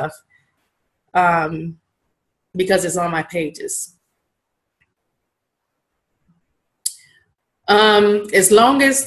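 A woman talks calmly and close to a microphone, in short phrases with pauses.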